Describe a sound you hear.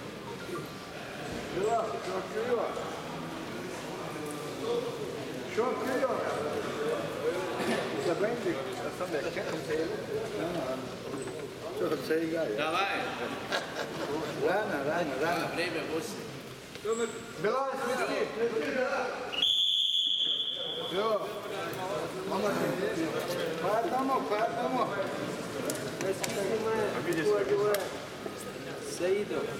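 A crowd of men and women chatters loudly in a large echoing hall.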